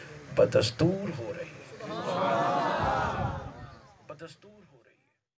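A man preaches loudly and with passion into a microphone, heard through loudspeakers in an echoing space.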